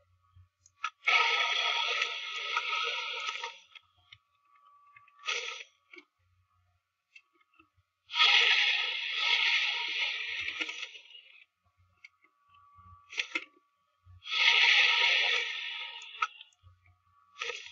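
A dragon roars loudly in long bursts.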